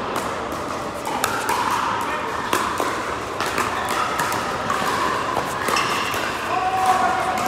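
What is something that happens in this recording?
Paddles pop sharply against a plastic ball, echoing in a large hall.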